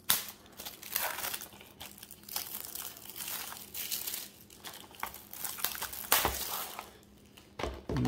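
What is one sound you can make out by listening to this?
Plastic wrap crinkles and rustles as it is torn and peeled away.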